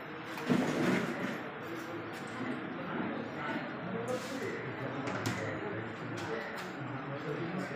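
Several men and women talk at once.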